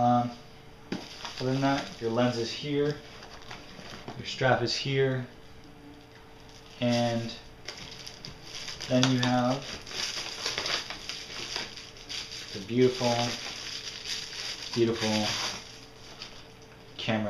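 Cardboard and plastic wrapping rustle and crinkle as a package is unpacked.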